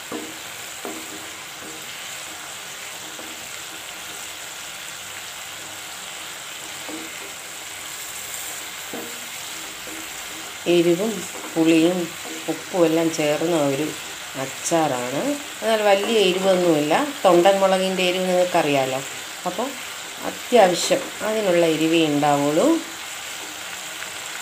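A wooden spatula stirs a thick sauce in a pan.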